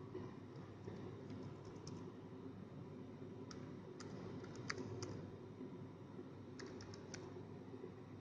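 Keys click softly on a small keyboard.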